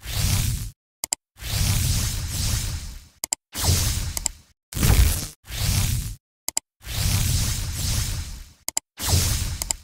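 A mouse clicks sharply several times.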